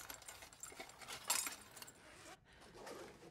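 Metal scrap clatters and scrapes as it is pulled apart.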